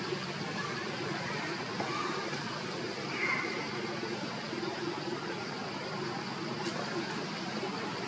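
Leaves and branches rustle as monkeys move in a tree.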